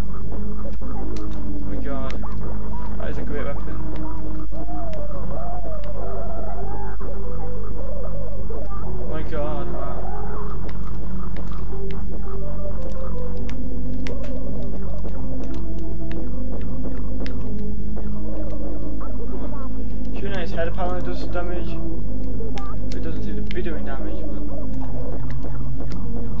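Game music with a steady beat plays throughout.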